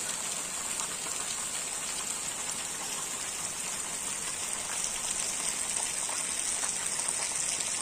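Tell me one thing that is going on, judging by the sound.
Wind rustles through leaves.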